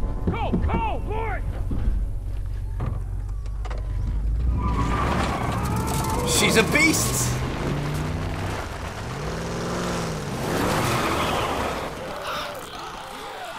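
A truck engine roars as it drives off.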